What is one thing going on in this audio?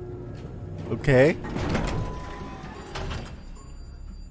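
Metal elevator doors slide open with a loud whoosh.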